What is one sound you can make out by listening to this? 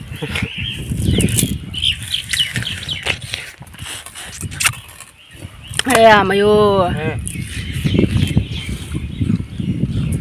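A young woman crunches food while chewing.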